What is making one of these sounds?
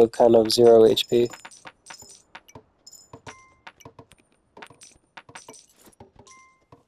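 A horse's hooves clop steadily.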